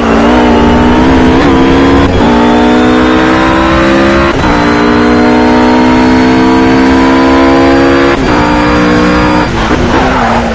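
A racing car engine howls at full throttle, shifting up through the gears.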